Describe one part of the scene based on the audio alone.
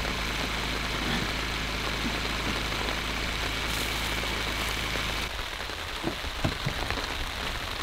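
A canvas tarp rustles softly in the wind.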